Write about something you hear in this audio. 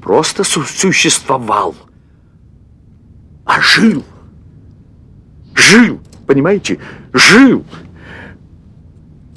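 An elderly man shouts with agitation nearby.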